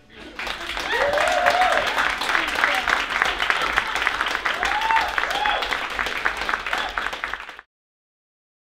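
A small crowd claps and applauds warmly indoors.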